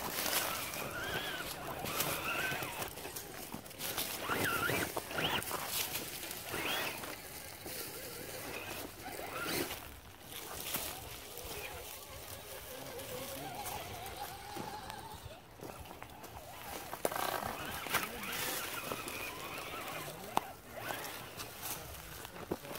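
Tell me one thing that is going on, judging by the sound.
A small electric motor whines as a toy truck crawls along.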